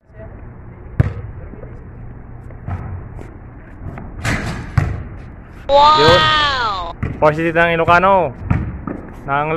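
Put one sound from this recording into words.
A basketball bounces on concrete outdoors.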